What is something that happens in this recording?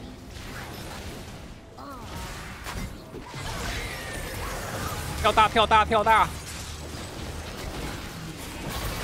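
Magic spells whoosh and crackle in a fast game battle.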